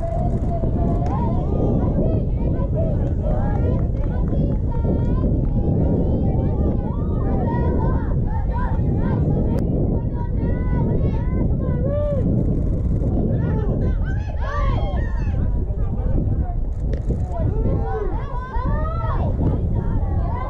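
Girls shout and cheer across an open field.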